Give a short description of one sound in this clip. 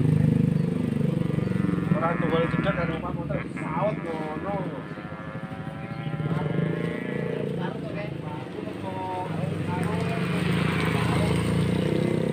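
A motorcycle rides past close by and fades into the distance.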